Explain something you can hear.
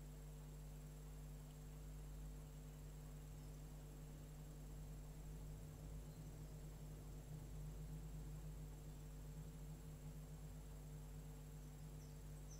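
A watercolour brush strokes across paper.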